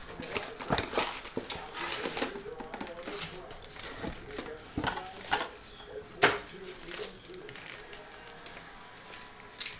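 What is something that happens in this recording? Card packs rustle and slap as hands shuffle them.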